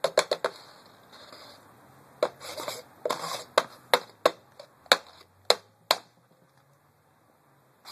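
A plastic cup knocks against a wooden tabletop.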